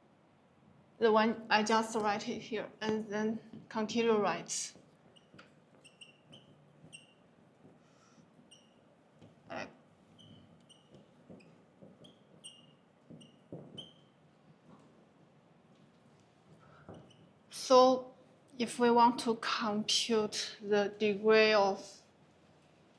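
A woman speaks calmly and clearly, as if explaining to a class.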